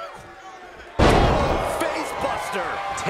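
A loud thud sounds as a body slams onto a wrestling ring mat.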